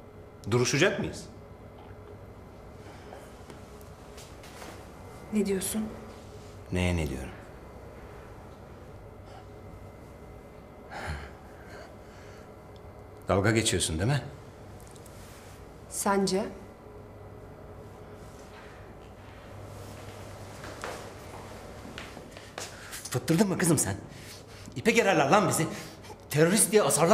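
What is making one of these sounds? A man speaks quietly and intently, close by.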